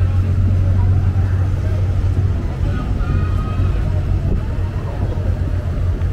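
A motorcycle engine rumbles as it rides slowly past.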